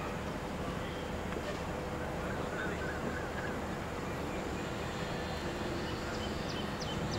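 Wind rumbles steadily across an open field.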